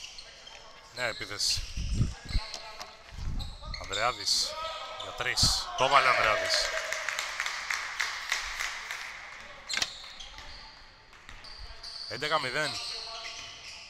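Young men shout to each other across an echoing hall.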